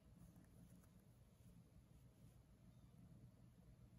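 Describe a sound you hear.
Thread pulls through fabric with a faint soft swish.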